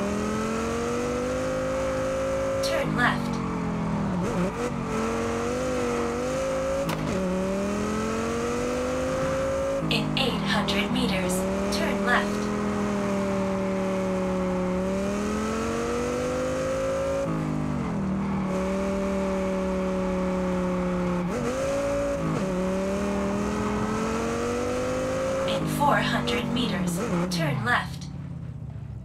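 A car engine roars, revving up and dropping as gears shift.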